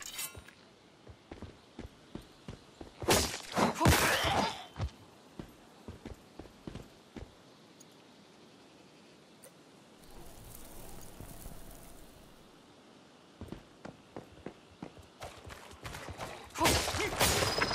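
Footsteps crunch over grass and wooden floors.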